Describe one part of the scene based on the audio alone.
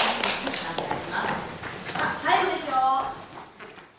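Bare feet thud and slap on a mat nearby.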